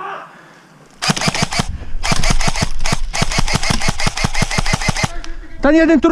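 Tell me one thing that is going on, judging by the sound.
An airsoft rifle fires rapid bursts of sharp shots up close.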